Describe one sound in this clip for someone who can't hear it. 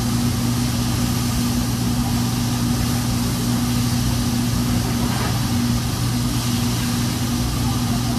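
An exhaust hood hums steadily.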